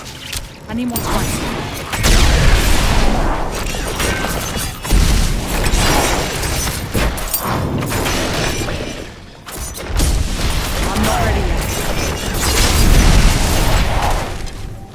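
Magic spells crackle and whoosh in a fast fight.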